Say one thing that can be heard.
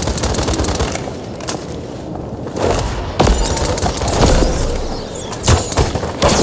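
Arrows whoosh as a bow is loosed in quick shots.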